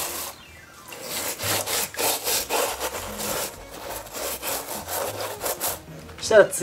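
A stiff brush scrubs a shoe in quick, rough strokes.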